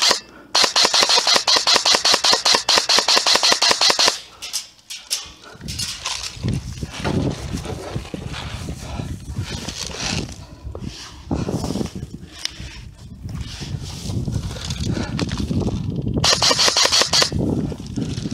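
A paintball gun fires rapid bursts of shots close by.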